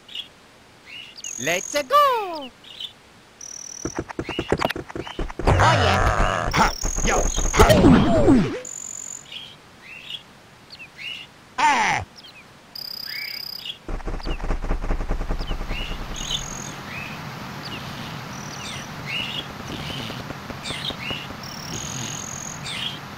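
Cartoonish video game sound effects chirp, boing and whoosh.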